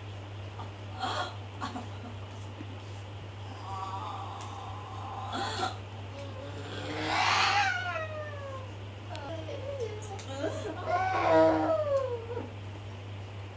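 A woman cries out and wails loudly nearby.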